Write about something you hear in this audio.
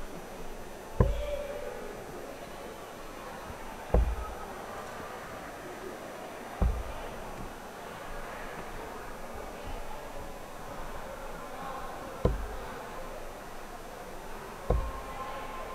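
Darts thud sharply into a board, one at a time, in a large hall.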